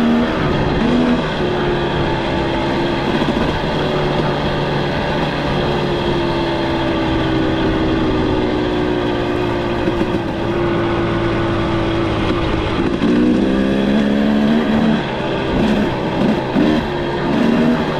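Tyres crunch steadily over a gravel road.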